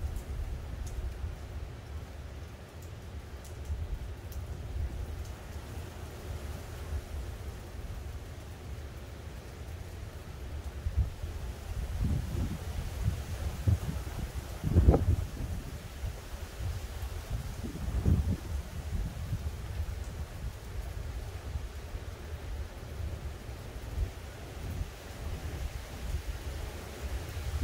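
Wind gusts outdoors and rumbles against the microphone.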